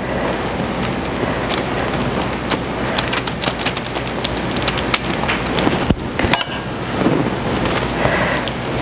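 A knife taps and scrapes on a cutting board.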